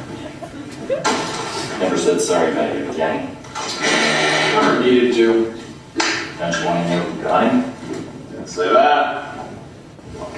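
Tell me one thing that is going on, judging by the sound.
Two men talk back and forth nearby.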